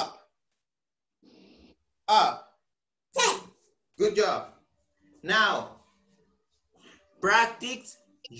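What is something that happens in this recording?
A young man speaks with animation into a nearby microphone in short bursts.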